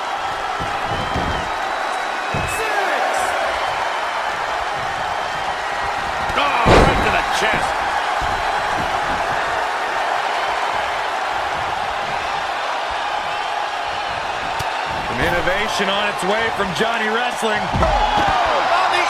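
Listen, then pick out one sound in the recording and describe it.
Bodies thud hard onto a wrestling ring mat.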